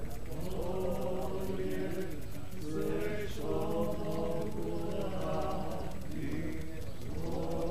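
A group of adults sing together outdoors.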